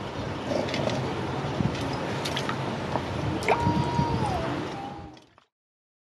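Hands squelch raw meat in a bowl of water.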